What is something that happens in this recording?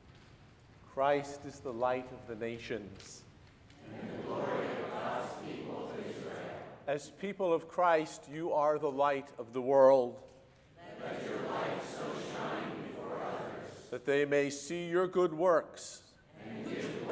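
An elderly man chants in a reverberant hall.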